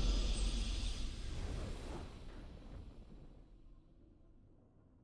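A booming, shimmering victory sound effect rings out and slowly fades away.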